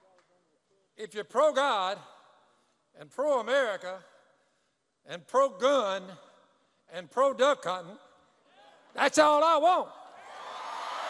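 An elderly man speaks slowly into a microphone, heard over loudspeakers in a large echoing hall.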